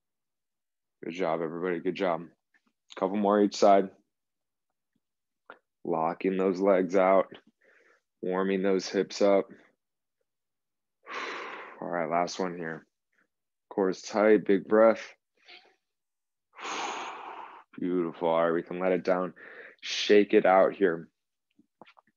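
A young man speaks calmly and clearly, close to a microphone, in short phrases with pauses.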